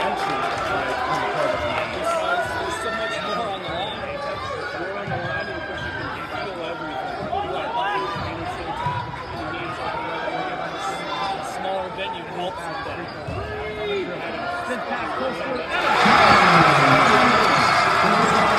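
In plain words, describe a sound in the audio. A crowd of spectators murmurs and chatters in a large echoing gym.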